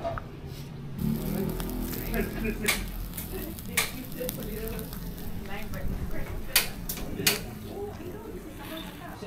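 Skewers of meat sizzle and crackle over hot charcoal.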